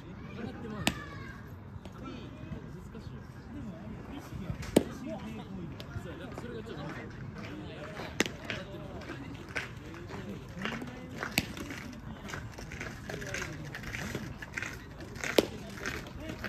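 A baseball smacks sharply into a catcher's mitt again and again.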